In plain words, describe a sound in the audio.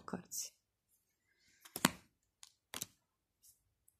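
Playing cards tap and slide as they are set down.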